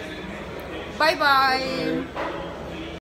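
Two women laugh and squeal close by.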